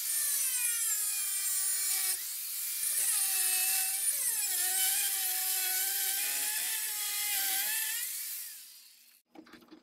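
An angle grinder whines loudly as it grinds metal, its pitch dipping under load.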